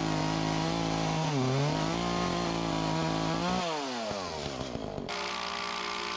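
A chainsaw engine revs loudly up and down.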